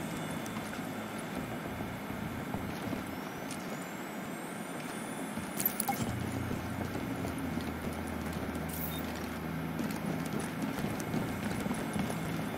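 Footsteps clank on metal stairs and walkways.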